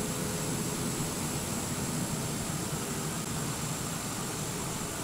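A small tow tractor's engine hums steadily.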